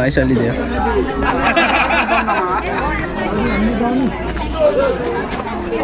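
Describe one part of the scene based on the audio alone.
A crowd of men and women chatter all around, close by and outdoors.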